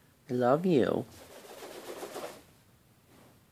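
A parrot flaps its wings.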